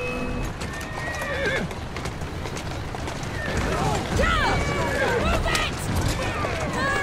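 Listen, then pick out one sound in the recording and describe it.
Carriage wheels rumble and rattle over cobblestones.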